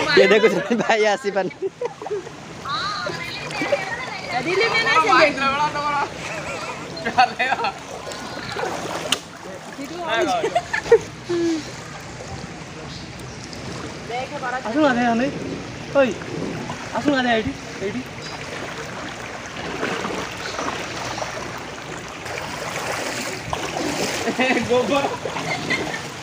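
Floodwater rushes and swirls steadily outdoors.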